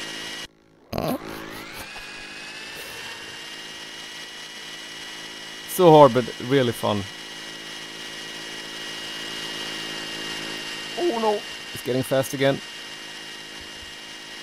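A small model aircraft motor whines steadily.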